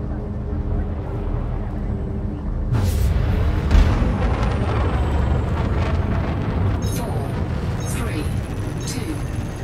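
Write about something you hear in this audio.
A spaceship engine hums with a deep, steady rumble.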